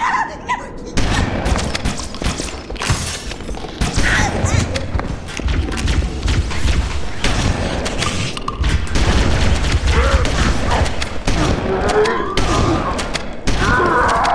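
Shotgun blasts boom in quick bursts.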